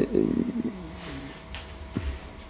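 A man speaks calmly across a small room.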